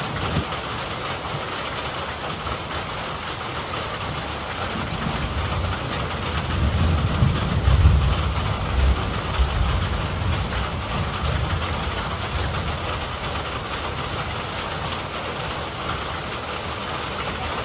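Steady heavy rain pours down outdoors.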